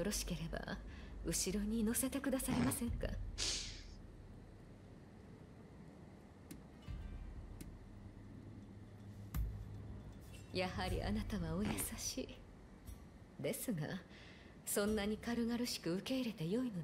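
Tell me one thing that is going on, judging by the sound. A young woman speaks calmly and playfully nearby.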